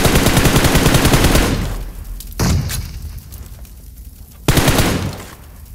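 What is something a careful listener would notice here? A rifle fires rapid bursts of loud shots up close.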